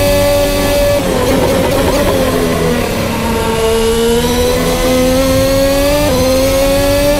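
A racing car engine's pitch falls as the car slows for a bend, then climbs again.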